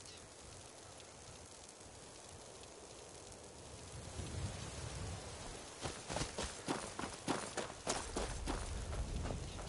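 Magic energy crackles and hums softly.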